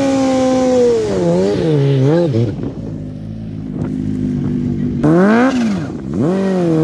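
A motorcycle engine revs up and down in quick bursts.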